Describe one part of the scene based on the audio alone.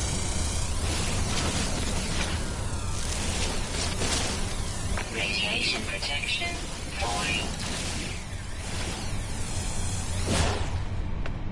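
A laser beam buzzes and crackles in bursts.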